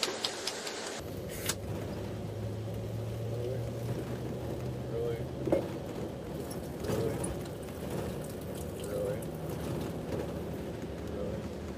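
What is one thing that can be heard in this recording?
Liquid pours and splashes onto fabric.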